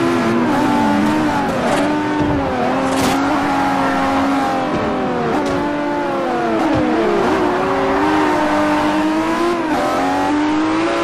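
A sports car engine roars and whines, its pitch rising and falling as it shifts gears.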